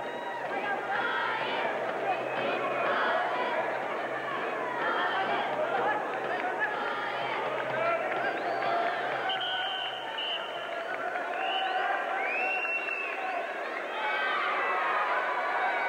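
A large crowd chatters and cheers in a big echoing hall.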